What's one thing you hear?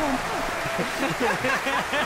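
A man speaks with a smile close by.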